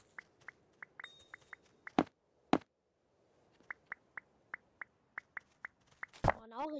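Footsteps tap quickly on blocks.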